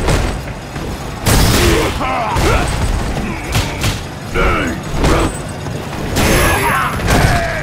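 Heavy punches land with loud smacking thuds.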